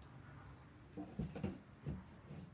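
A wooden board is set down on a table with a soft knock.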